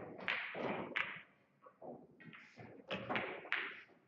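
Billiard balls clack against each other and roll across the table.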